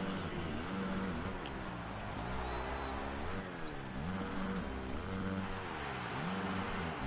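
Knobby tyres spray and churn loose dirt.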